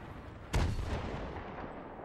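A rifle shot cracks and echoes away.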